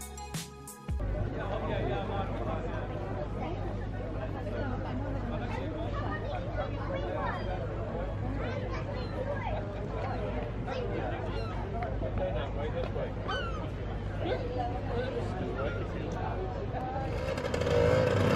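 A crowd of people chatter outdoors in a steady murmur.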